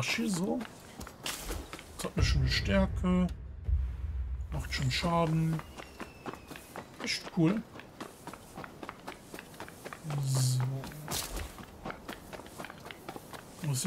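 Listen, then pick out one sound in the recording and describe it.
Footsteps rustle quickly through tall grass.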